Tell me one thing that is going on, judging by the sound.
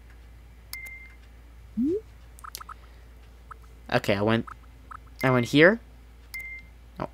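Short electronic menu chimes and blips sound.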